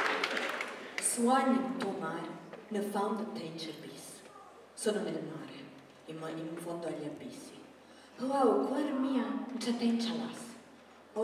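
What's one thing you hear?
A young woman speaks calmly into a microphone, heard over loudspeakers in a large hall.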